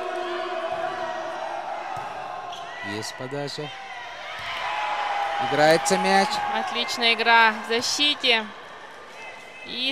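A volleyball is struck hard several times in a large echoing hall.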